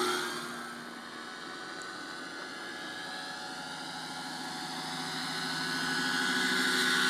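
A helicopter engine whines and its rotor thumps, growing louder as the helicopter comes closer.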